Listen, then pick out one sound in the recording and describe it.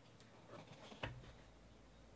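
A stack of cards is set down on a table with a soft knock.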